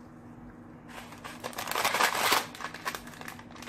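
A paper packet crinkles and rustles close by.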